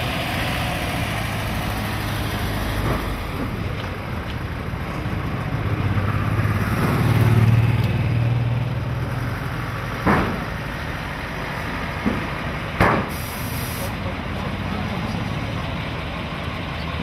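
A fire engine's diesel engine rumbles as it slowly drives closer.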